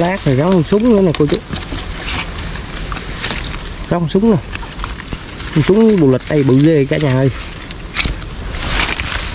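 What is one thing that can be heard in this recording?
Leaves and stems rustle as hands push through plants.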